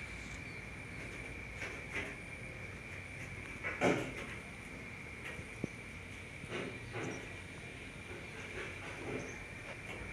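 A hand softly strokes the fur of a baby monkey.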